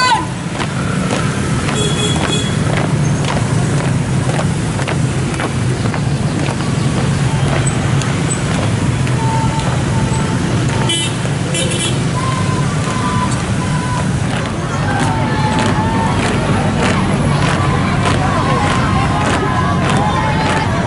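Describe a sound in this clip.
A busy crowd murmurs outdoors.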